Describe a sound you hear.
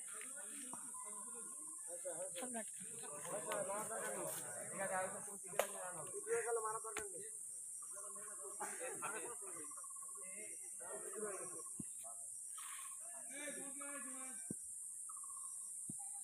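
Young men and boys call out and shout to each other outdoors.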